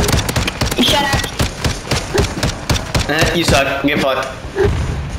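Rapid gunfire rings out in quick bursts.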